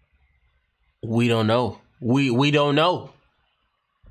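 A young man speaks up close with excitement.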